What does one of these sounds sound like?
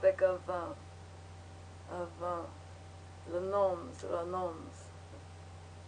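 A young woman speaks quietly and close by, in short bursts.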